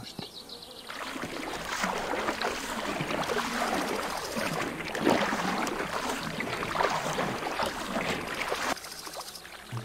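Water splashes and rushes.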